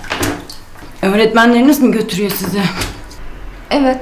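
A woman speaks flatly up close.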